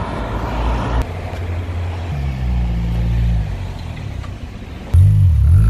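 A car engine revs and rumbles as it drives by.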